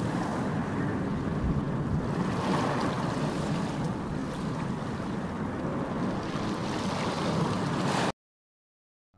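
Waves wash gently onto a beach.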